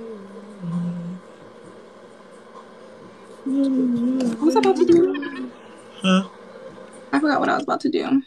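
A woman speaks with animation, heard through a phone microphone.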